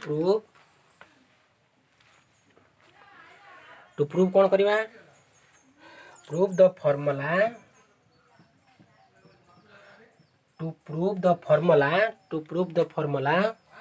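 A man speaks calmly close by, explaining in pauses.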